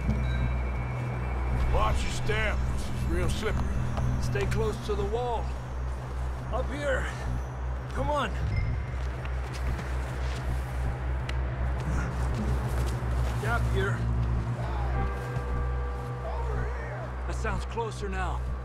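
Boots crunch steadily through snow.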